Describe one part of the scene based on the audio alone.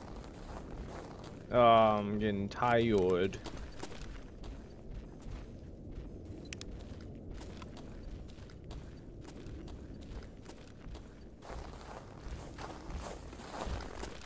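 Footsteps crunch slowly over a gritty concrete floor.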